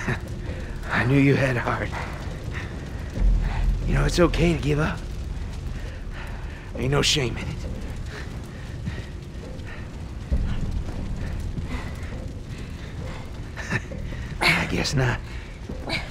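A man speaks in a low, gravelly voice, close by.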